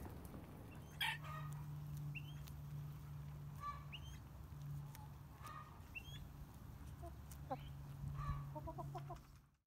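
Hens cluck and chirp softly close by.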